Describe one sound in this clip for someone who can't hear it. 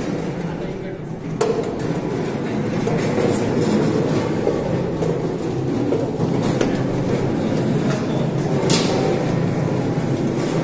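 Men talk nearby in a busy room.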